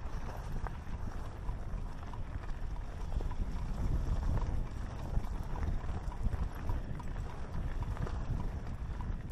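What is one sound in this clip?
Wind buffets a microphone on a moving rider.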